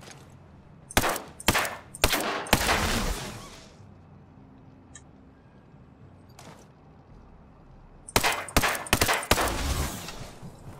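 Gunshots fire in quick bursts, close by and sharp.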